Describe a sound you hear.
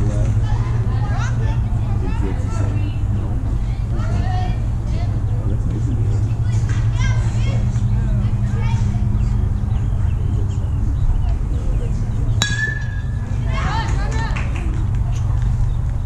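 Young players shout and chatter across an open field.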